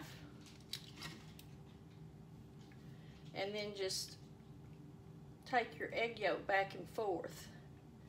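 An eggshell crackles and crunches as it is peeled off by hand.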